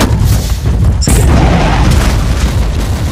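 A loud explosion bursts and rumbles.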